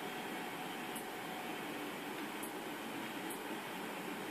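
Video game menu clicks tick from a television speaker.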